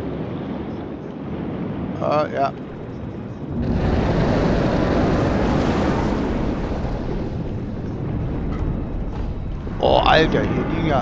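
Water churns with a low, muffled underwater rumble that swells louder partway through.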